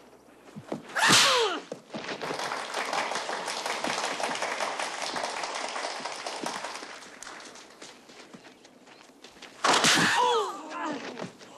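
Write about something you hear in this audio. A man lets out a loud fighting yell up close.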